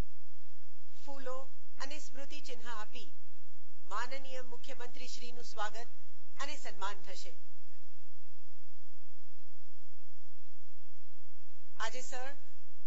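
A woman speaks through a microphone and loudspeakers, in short phrases with pauses.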